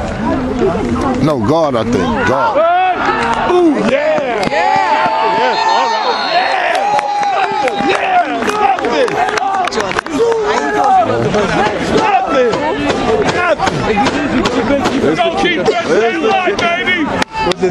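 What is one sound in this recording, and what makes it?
A crowd of people shouts and cheers loudly outdoors.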